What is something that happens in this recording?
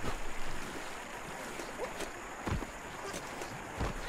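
Water splashes and churns around a wading figure.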